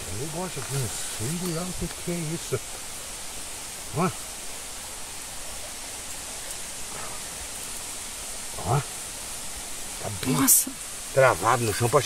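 Hands scoop and rustle loose soil.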